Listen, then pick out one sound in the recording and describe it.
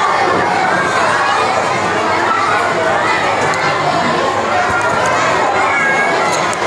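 A young boy recites in a sing-song voice through a microphone in an echoing hall.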